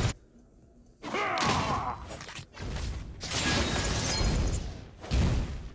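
Video game spell blasts and hits crash and crackle in quick bursts.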